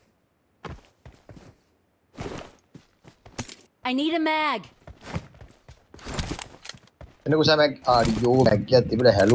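Footsteps crunch quickly on grass and gravel.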